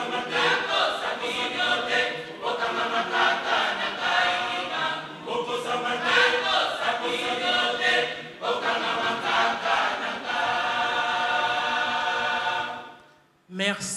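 A choir sings together in a room.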